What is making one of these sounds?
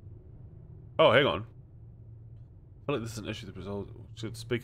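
A young man speaks into a close microphone with animation.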